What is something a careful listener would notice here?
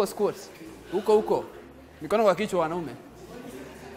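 A man speaks with animation, echoing in a large room.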